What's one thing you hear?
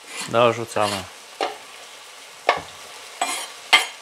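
A knife scrapes chopped food off a wooden board into a pan.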